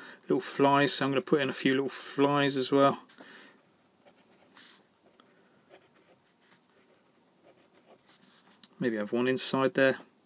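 A marker pen scratches softly across paper.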